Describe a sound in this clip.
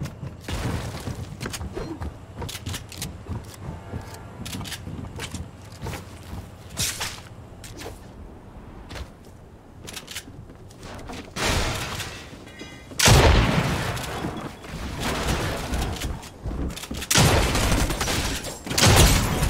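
Quick footsteps patter across hard ground.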